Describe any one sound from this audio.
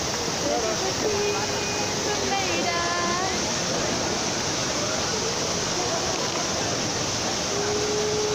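Water from a fountain splashes and rushes steadily.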